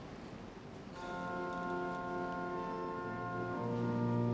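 A choir begins to sing.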